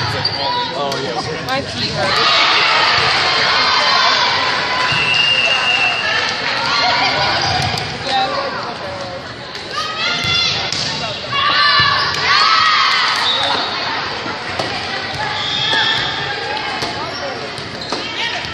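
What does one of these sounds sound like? Young women players call out to each other on the court.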